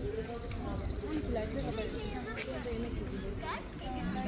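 Men and women talk nearby outdoors.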